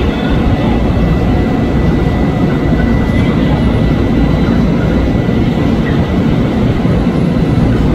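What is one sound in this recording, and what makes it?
An electric train rumbles steadily along the tracks close by.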